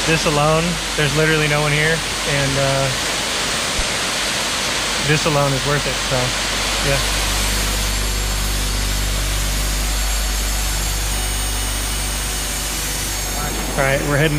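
A waterfall splashes and rushes steadily.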